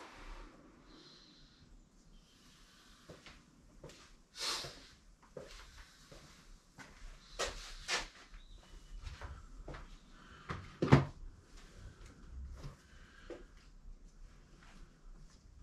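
Footsteps approach and walk away on a hard floor.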